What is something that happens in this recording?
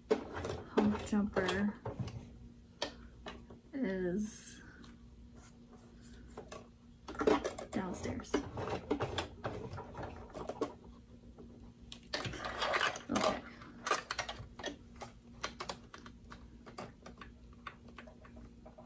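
A sewing machine whirs and stitches steadily.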